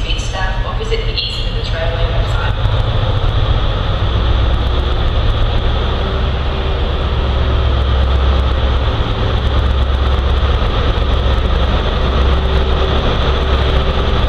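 A diesel train approaches slowly with a deep, steady engine rumble that grows louder.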